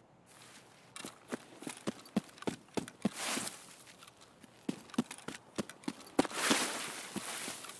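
Footsteps rustle through tall grass at a quick pace.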